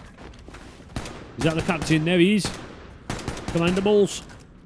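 Gunfire bursts in short rapid shots.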